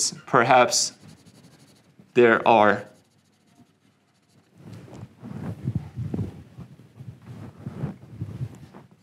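A man speaks calmly and clearly, as if lecturing, close to a microphone.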